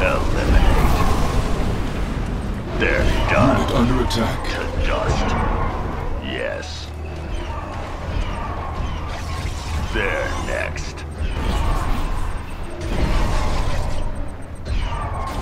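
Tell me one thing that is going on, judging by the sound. Explosions and gunfire rumble through a battle.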